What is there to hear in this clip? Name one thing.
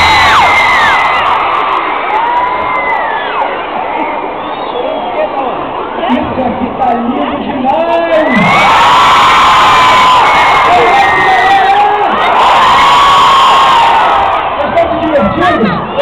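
A large crowd screams and cheers loudly in an echoing hall.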